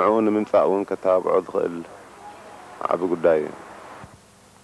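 A man speaks calmly into a microphone up close.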